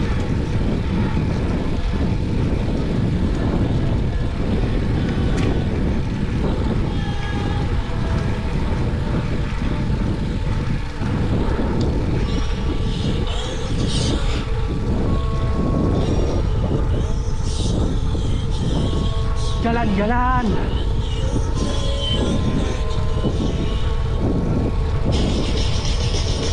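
Wind rushes and buffets steadily as a bicycle rides along.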